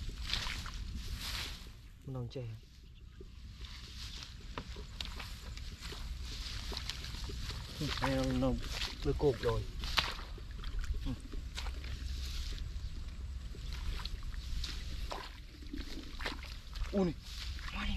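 Dry straw rustles and crunches under bare feet.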